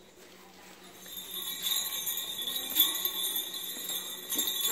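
Small bells jingle on a dog's collar as the dog moves about.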